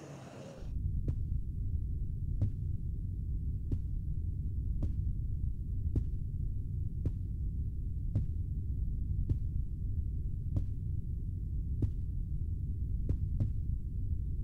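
Slow, even footsteps thud on a hard floor.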